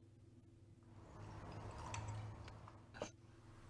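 Water pours into a glass.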